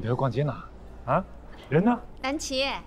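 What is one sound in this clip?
A young man asks a short question in surprise.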